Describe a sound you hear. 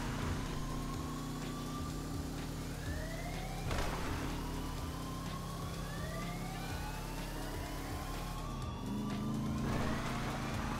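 A car engine revs up repeatedly as it shifts through gears.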